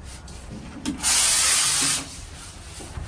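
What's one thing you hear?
A spray gun hisses loudly in a short burst.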